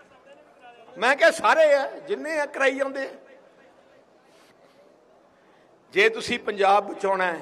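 An elderly man speaks forcefully into a microphone over loudspeakers.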